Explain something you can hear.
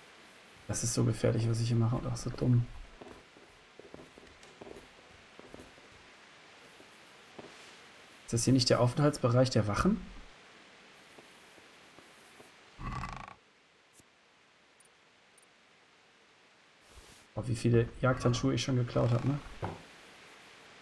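A man talks into a microphone in bursts, calmly and close up.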